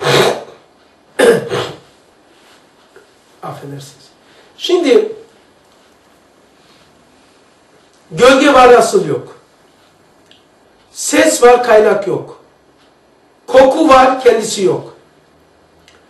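An elderly man speaks slowly and calmly in short phrases, with long pauses.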